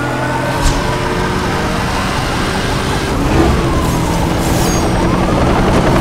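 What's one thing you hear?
Tyres crunch and skid over gravel.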